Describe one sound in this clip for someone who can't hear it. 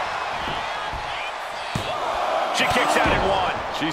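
A hand slaps against a wrestling mat several times.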